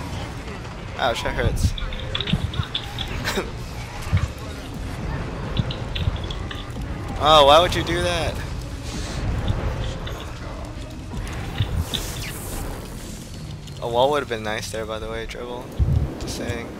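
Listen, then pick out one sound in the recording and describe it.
Magic effects whoosh and chime in quick bursts.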